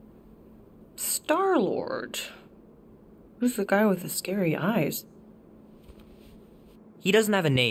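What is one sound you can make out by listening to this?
A woman speaks calmly and close by, in short phrases.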